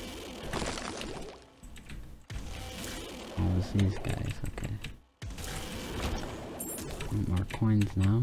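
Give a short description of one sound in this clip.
Soft wet shots and splats pop in quick succession.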